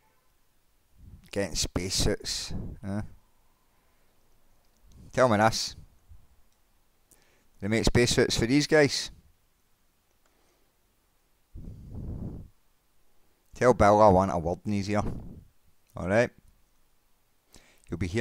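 A middle-aged man talks with animation into a nearby microphone, in bursts with pauses.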